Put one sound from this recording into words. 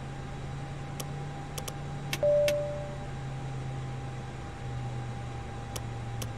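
Cockpit switches click a few times.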